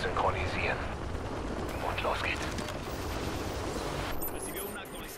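Helicopter rotors thud overhead.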